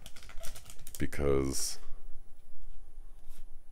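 Cards slide and flick against each other.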